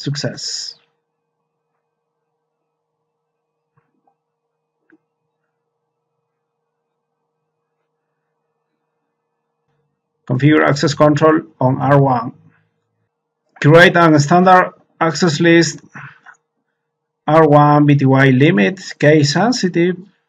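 A man speaks calmly into a close microphone, explaining.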